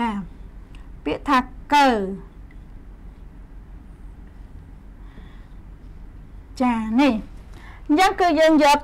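A young woman speaks clearly and slowly, close to a microphone, in short bursts.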